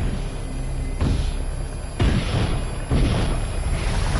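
Heavy footsteps thud slowly.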